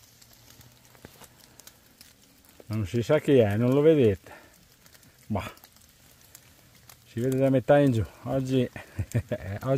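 Dry leaves rustle underfoot as someone walks.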